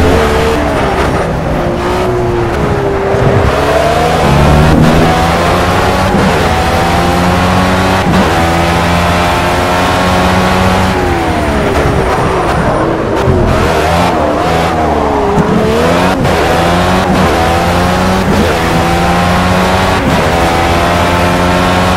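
A racing car engine screams, rising in pitch through each gear and dropping sharply at each shift.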